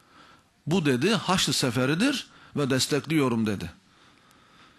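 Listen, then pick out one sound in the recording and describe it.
A middle-aged man speaks forcefully into a microphone, heard through loudspeakers.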